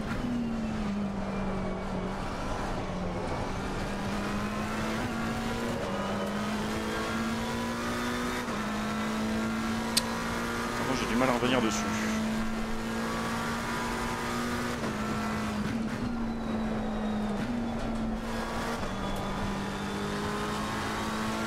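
A racing car engine drones steadily, shifting gears now and then.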